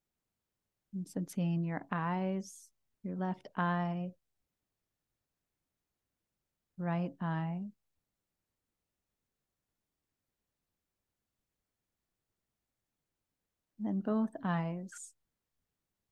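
A woman speaks slowly and calmly into a close microphone, with long pauses.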